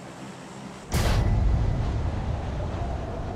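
Wind rushes loudly past a falling skydiver.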